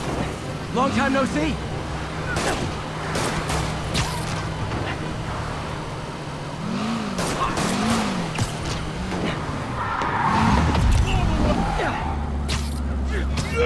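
A car engine roars as a car speeds down a street.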